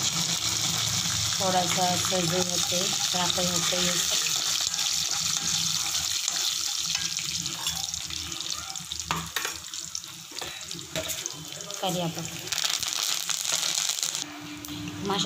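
Oil sizzles and crackles steadily in a hot pan.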